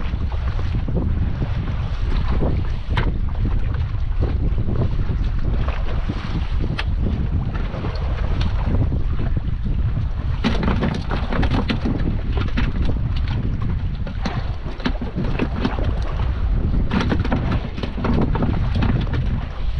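Waves lap against a small boat's hull.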